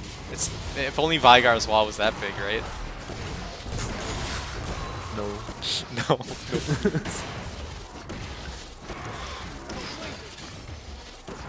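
Magic spells whoosh and crackle in a fast fight.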